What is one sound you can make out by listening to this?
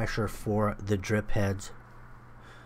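A man speaks nearby outdoors.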